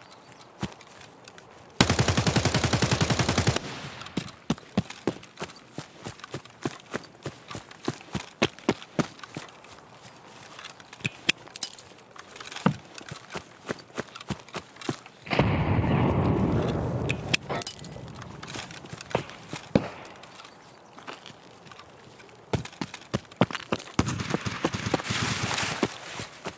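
Footsteps crunch steadily through grass and gravel.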